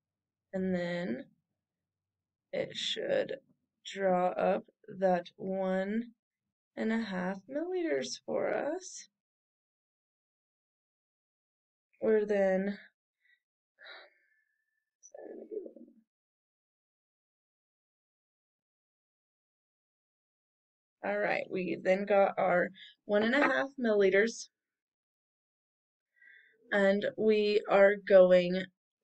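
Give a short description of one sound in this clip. A young woman speaks calmly and clearly into a nearby microphone, pausing often.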